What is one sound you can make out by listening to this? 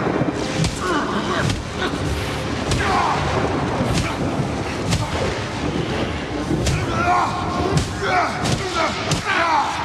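Electricity crackles and zaps.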